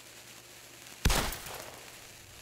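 A gunshot fires loudly and echoes briefly.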